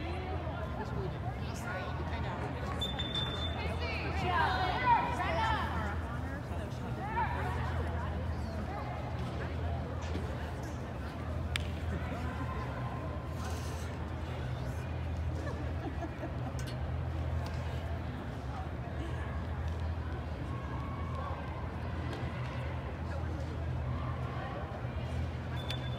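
A crowd of spectators murmurs from the stands.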